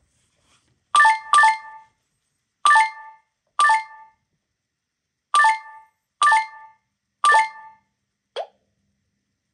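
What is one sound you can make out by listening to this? Short bright electronic chimes ring out again and again.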